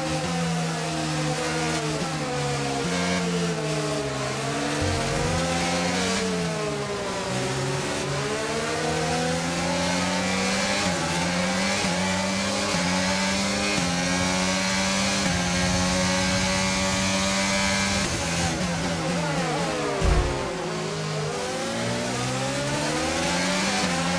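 A racing car engine screams loudly, rising and falling in pitch as it shifts gears.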